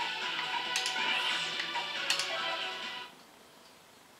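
Upbeat video game music plays from a television speaker.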